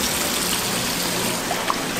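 A knife scrapes across the skin of a fish.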